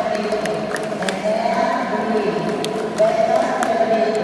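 Girls clap their hands.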